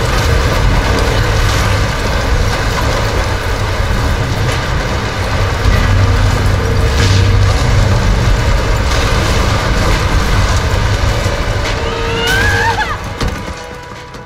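A deep rumble of falling debris goes on throughout.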